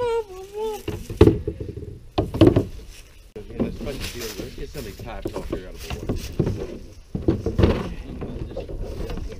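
Gear knocks and clatters against a plastic boat.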